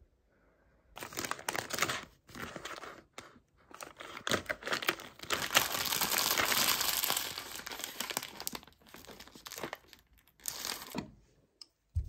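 A plastic snack wrapper crinkles and rustles close by.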